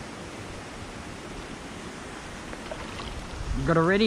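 A small lure plops into still water.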